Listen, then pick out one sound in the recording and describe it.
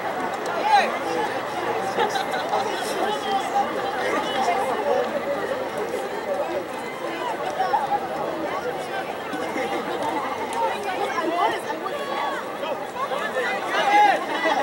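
A crowd of spectators chatters and shouts in an open stadium.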